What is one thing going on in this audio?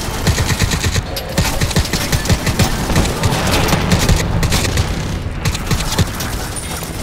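Rapid gunfire cracks in bursts.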